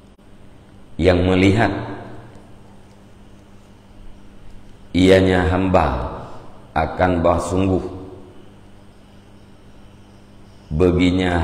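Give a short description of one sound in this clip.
A middle-aged man chants slowly in a melodic voice into a close microphone, with pauses between phrases.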